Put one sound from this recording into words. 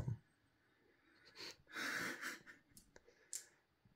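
Dice clatter on a table.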